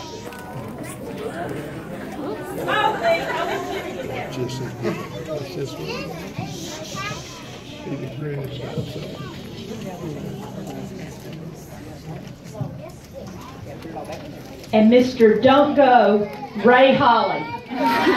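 A small audience murmurs and chatters nearby.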